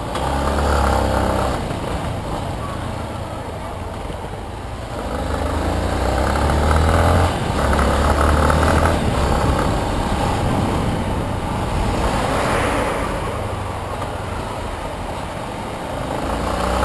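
Traffic rumbles all around.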